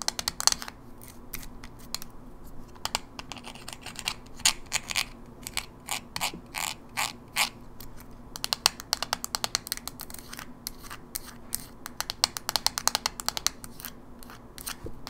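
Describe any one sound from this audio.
Long fingernails tap and click on a plastic game cartridge, close up.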